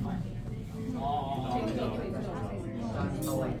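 A man plays a violin.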